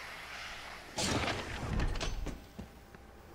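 A heavy metal door slides open with a rumbling whoosh.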